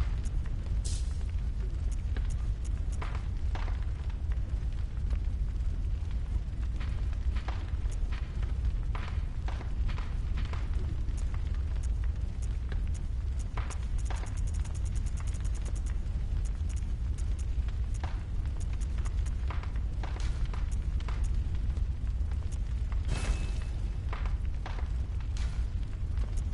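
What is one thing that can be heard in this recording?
Short soft menu clicks sound as selections change, one after another.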